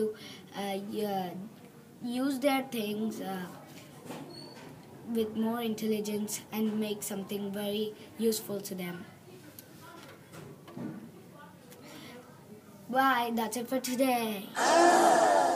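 Two children speak in turn through an online call, close to the microphone.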